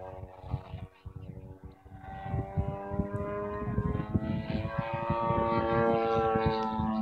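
A small engine drones overhead, growing louder and higher.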